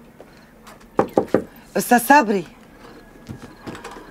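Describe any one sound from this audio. A woman knocks on a wooden door.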